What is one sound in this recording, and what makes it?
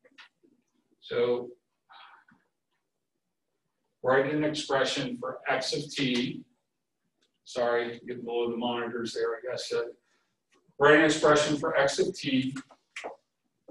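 A man speaks calmly in a slightly echoing room.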